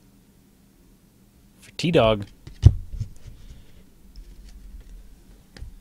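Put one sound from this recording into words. Trading cards rustle and slide as hands handle them.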